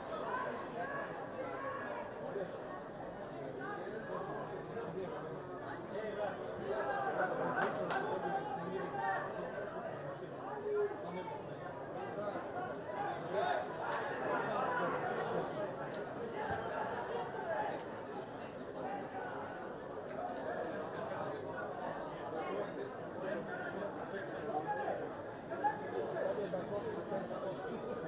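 A crowd murmurs and chants in an open stadium.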